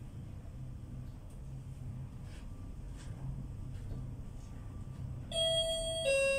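An elevator hums steadily as it rises.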